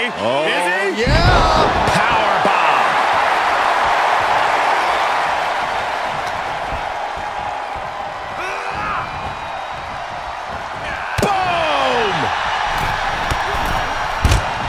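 A body slams onto a ring mat with a heavy thud.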